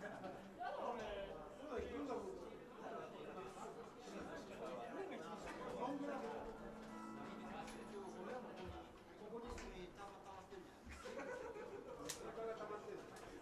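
A live band plays music in a small room.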